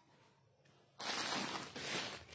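A plastic wrapper crinkles under a hand.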